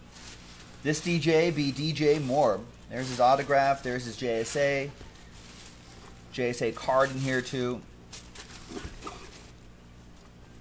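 Tissue paper rustles and crinkles.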